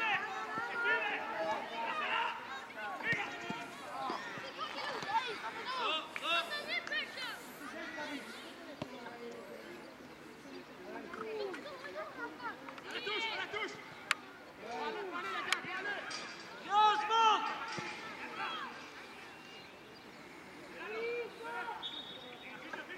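Young players shout to each other across an open pitch.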